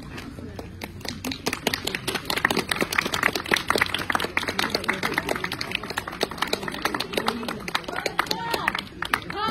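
A crowd claps hands rapidly.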